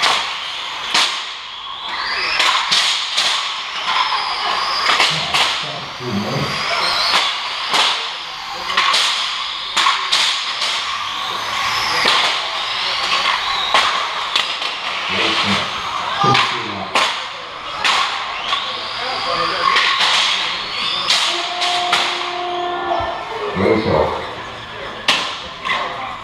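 Small electric model cars whine as they race around a track.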